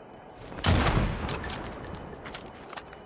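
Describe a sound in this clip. A rifle shot cracks and echoes.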